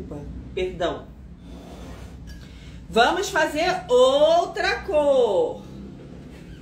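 A young woman speaks animatedly and close by.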